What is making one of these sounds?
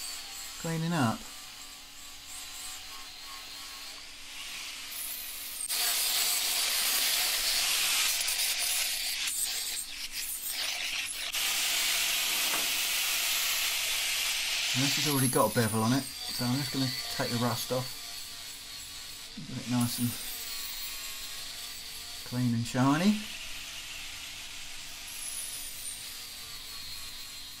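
An angle grinder whines loudly as it grinds metal.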